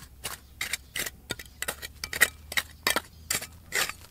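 Loose stones and grit clatter and trickle down.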